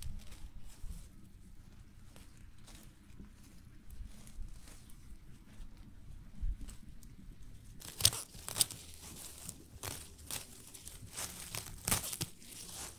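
Leaves rustle and stems snap as hands pick plants.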